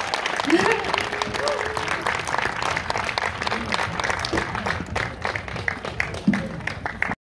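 Audience members cheer and whoop.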